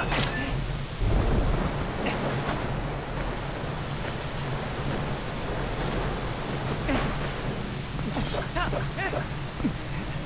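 A swarm of bats flutters and screeches.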